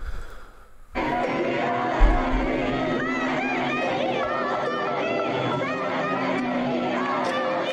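A large crowd chants loudly through a speaker.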